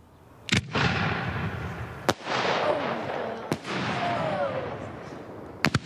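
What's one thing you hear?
Fireworks burst with sharp bangs outdoors.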